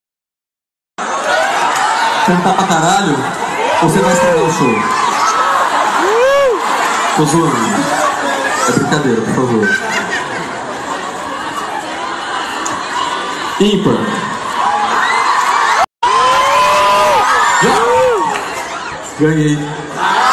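A crowd of young women screams and cheers.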